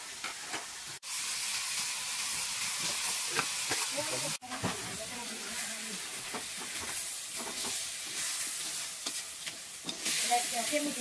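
Meat sizzles in a hot wok.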